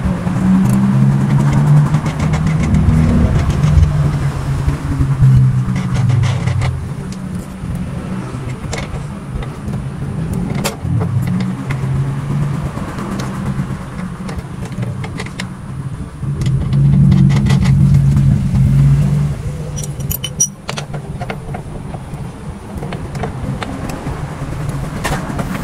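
Metal parts clink and tap as a motorcycle wheel is worked on by hand.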